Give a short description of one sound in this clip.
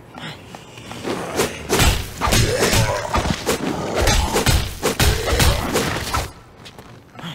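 Heavy blows and scuffling sound in a close fight.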